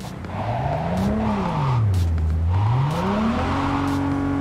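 Tyres screech on asphalt as a car drifts.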